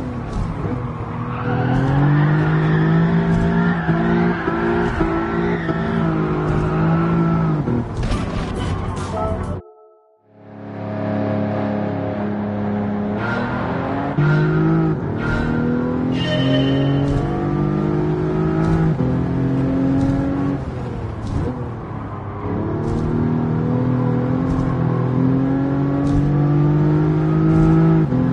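A racing car engine roars loudly and revs up through the gears.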